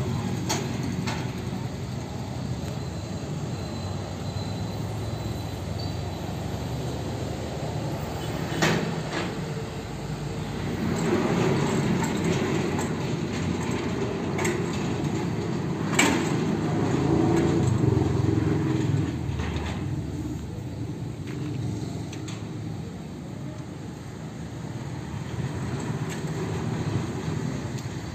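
Gate wheels rumble over rough ground.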